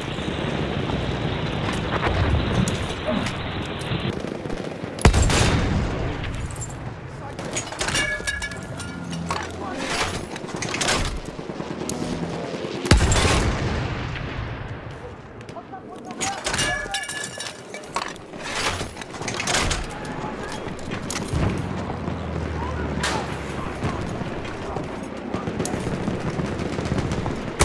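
Shells explode in the distance with dull thuds.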